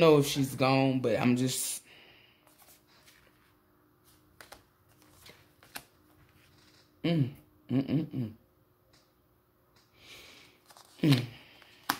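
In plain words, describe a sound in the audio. Playing cards rustle and slide against each other as they are shuffled.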